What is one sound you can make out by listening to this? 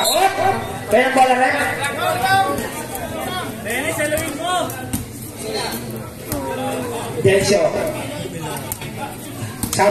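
Young men shout and call out to each other across an echoing court.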